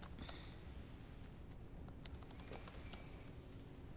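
Fabric rustles softly as hands handle it.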